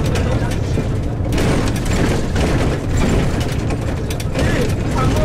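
A car engine rumbles steadily while driving along a road.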